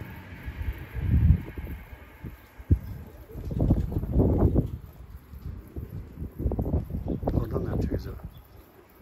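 Pigeons flap their wings close by.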